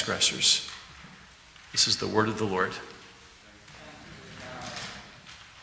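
A middle-aged man speaks calmly into a microphone in an echoing hall.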